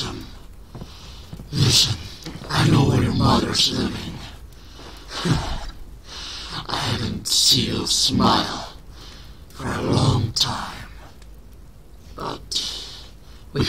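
A fire crackles in a fireplace.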